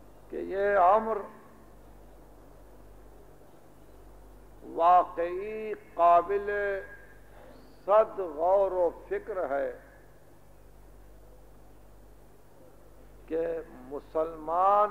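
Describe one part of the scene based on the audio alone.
A man speaks with feeling in slow, drawn-out phrases, through an old recording with a low hum.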